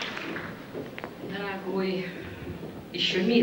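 A woman speaks through a microphone in a large echoing hall.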